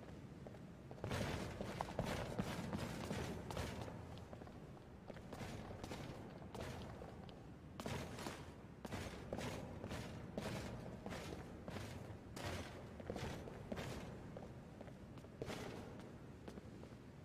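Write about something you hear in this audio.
Footsteps tap on stone steps at a steady pace.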